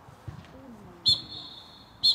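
A referee's whistle blows sharply outdoors.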